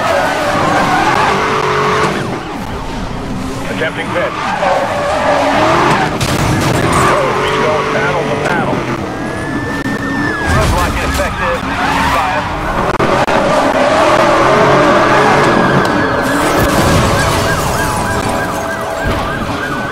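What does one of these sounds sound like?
Police sirens wail close by.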